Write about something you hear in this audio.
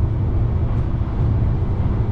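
A passing train rushes by close alongside.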